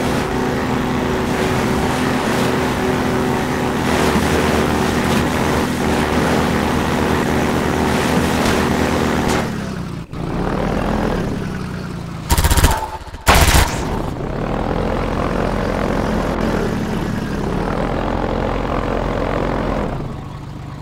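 An engine drones steadily and loudly.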